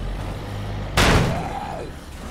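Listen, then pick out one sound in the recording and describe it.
A heavy vehicle crashes into a truck with a loud thud.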